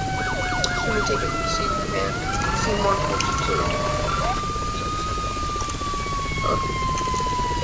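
Emergency vehicle sirens wail and yelp nearby.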